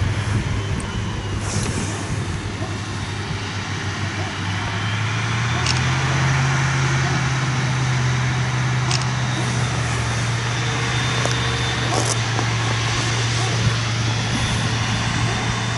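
A forage harvester's engine roars steadily close by.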